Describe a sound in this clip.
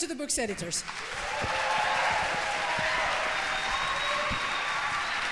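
People clap their hands in steady applause.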